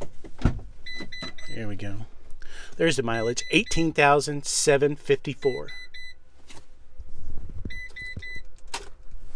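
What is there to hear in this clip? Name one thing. A vehicle's warning chime beeps repeatedly.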